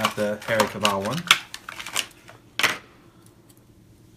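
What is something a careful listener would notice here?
Small plastic packaging crinkles and clicks in a man's hands.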